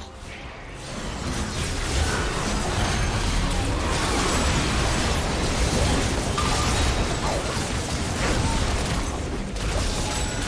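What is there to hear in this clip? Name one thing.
Game spell effects crackle, whoosh and clash in a busy fight.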